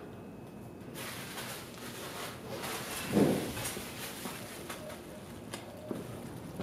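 Footsteps scuff on a hard floor nearby.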